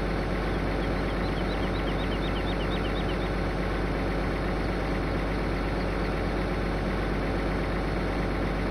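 A large tractor engine idles with a steady low rumble.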